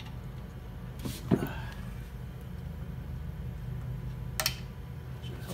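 Metal parts click and knock under a hand.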